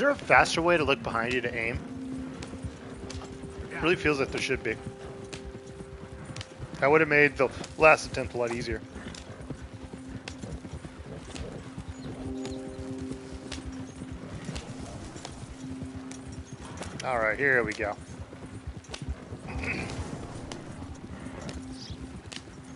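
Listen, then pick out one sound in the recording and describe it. Wooden wagon wheels rattle and creak over rough ground.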